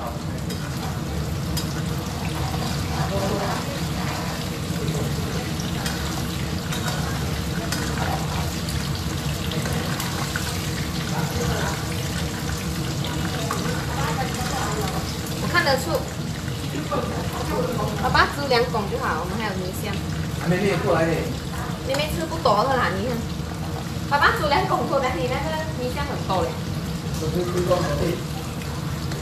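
Oil sizzles and bubbles steadily in a pan.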